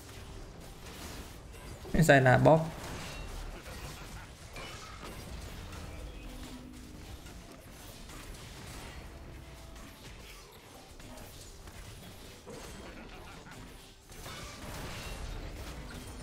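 Game sound effects of magic and clashing weapons play.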